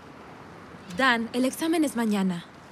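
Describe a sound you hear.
A young woman talks outdoors.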